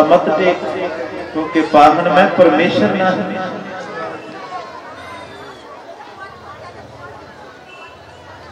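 A man speaks loudly and with emphasis into a microphone, heard over a loudspeaker.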